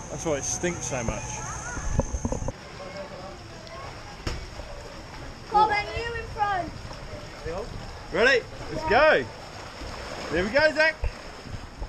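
Water splashes and rushes close by.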